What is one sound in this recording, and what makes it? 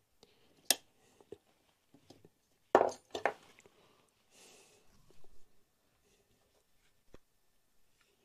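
Metal parts clink and knock as an engine part is handled.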